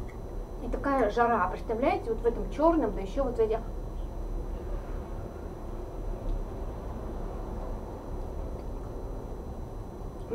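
A spoon clinks softly against a dish.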